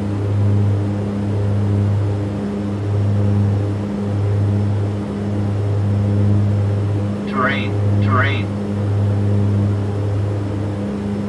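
Aircraft engines hum steadily in a low, pulsing drone.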